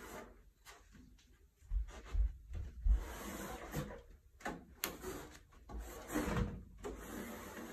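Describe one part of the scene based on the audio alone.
Hands bump and shift a hollow metal case on carpet.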